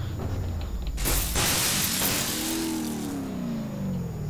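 A car crashes and tumbles over with a scraping rush of noise.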